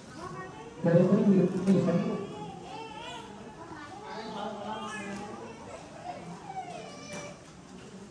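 A man speaks steadily through a loudspeaker, loudest near the start.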